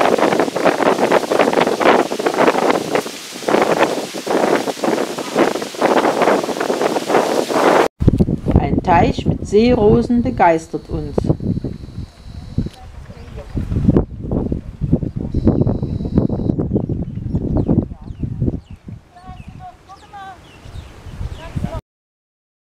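Wind gusts roar loudly across the microphone outdoors.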